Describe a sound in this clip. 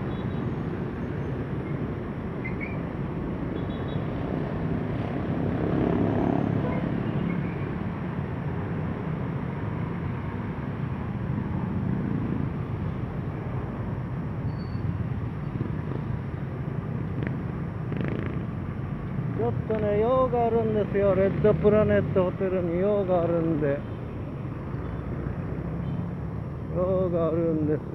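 Traffic rumbles past steadily outdoors on a busy street.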